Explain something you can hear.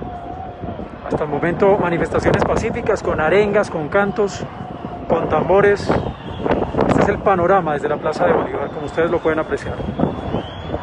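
A large crowd chants and shouts together outdoors, far below.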